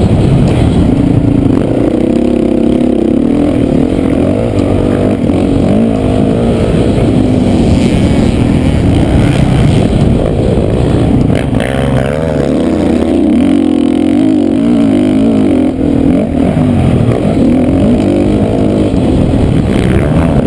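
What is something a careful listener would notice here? A dirt bike engine roars close by, revving up and down as the rider races.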